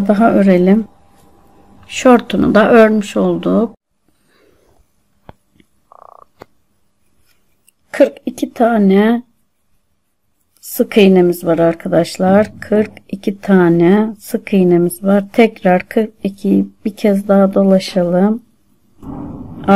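A crochet hook softly rustles as it pulls yarn through stitches.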